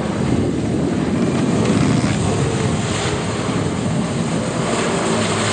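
Water sprays and splashes behind a jet ski.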